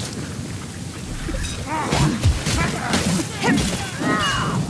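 A blade strikes and clashes in a fight.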